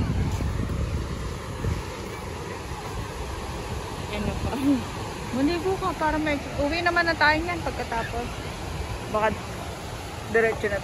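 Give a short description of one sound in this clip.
Waves break and wash onto the shore in a steady roar.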